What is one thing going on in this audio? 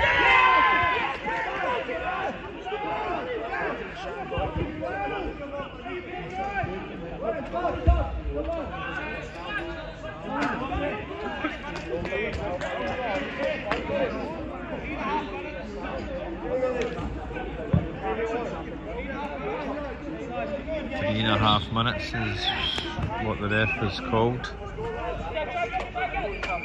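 Young men shout and call to each other outdoors during a football game.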